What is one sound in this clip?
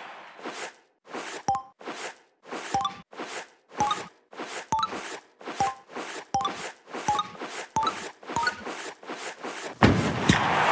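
Ice skates swish on ice in a quick, steady rhythm.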